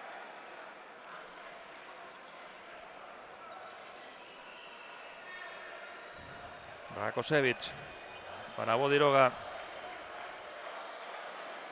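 A crowd murmurs steadily in a large echoing arena.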